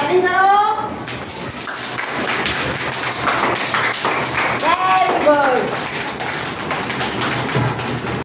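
Children clap their hands quickly.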